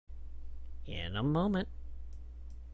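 A man speaks briefly and with animation through a microphone.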